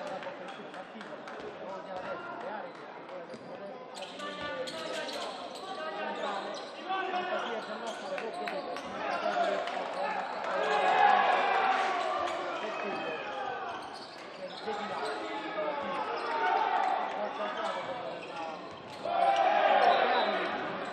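A crowd of spectators chatters and cheers in a large echoing hall.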